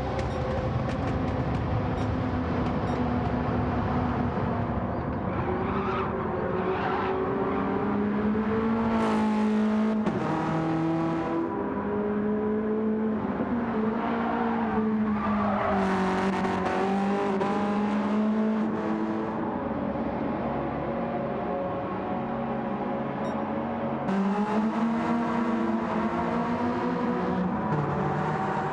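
Racing car engines roar as the cars speed along a track.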